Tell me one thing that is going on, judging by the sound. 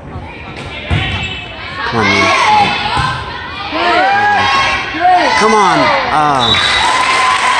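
Young girls shout to each other while playing volleyball.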